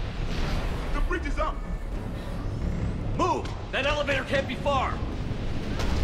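Winged creatures screech overhead.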